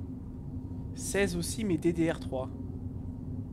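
A young man speaks briefly and with animation into a close microphone.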